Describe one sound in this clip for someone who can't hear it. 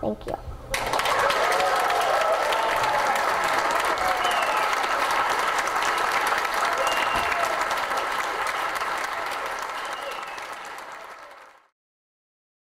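An audience applauds loudly and steadily, then the clapping fades away.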